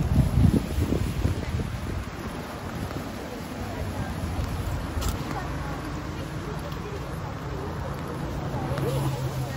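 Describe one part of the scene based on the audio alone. A crowd of women chatter nearby outdoors.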